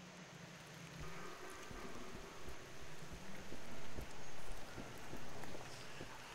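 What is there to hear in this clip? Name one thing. Footsteps thud softly along an echoing tunnel.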